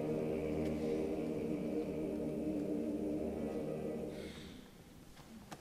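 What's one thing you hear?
A male choir sings in harmony in a large echoing hall.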